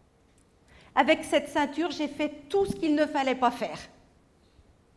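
A middle-aged woman speaks with animation.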